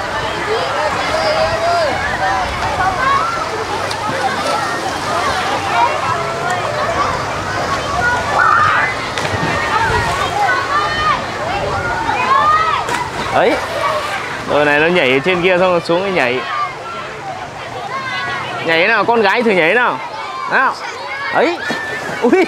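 Water splashes as children swim and play.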